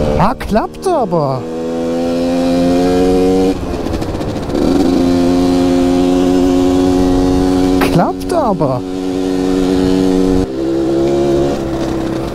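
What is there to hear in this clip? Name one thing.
A motorcycle engine roars loudly up close, revving up and dropping as gears shift.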